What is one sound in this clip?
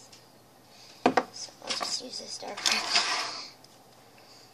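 Plastic markers clatter and rattle on a table.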